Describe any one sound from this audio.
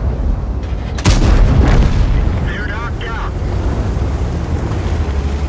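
Shells explode with heavy blasts.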